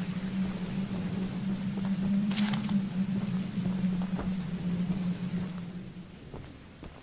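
Heavy rain pours down outdoors in a storm.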